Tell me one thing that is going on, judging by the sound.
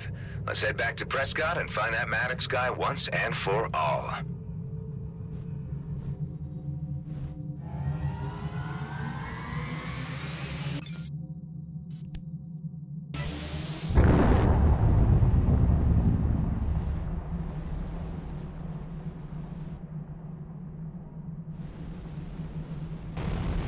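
A spacecraft engine hums with a low, steady drone.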